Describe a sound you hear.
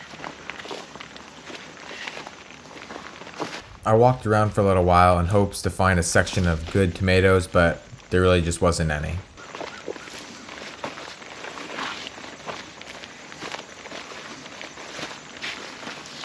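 Footsteps crunch and rustle through dry plants.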